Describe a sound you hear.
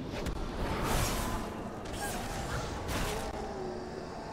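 Magic blasts burst and whoosh in a fight.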